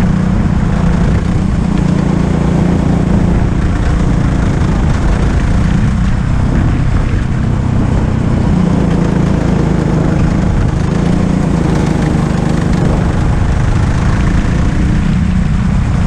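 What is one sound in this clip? A go-kart engine drones loudly up close, rising and falling in pitch as it speeds up and slows down.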